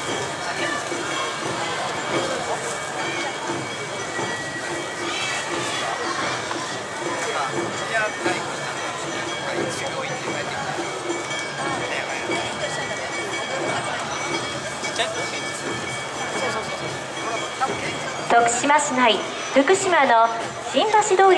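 Dancers chant and call out together as they parade.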